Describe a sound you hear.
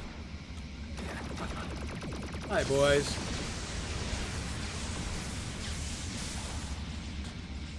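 A game's energy blasts zap and crackle during a fight.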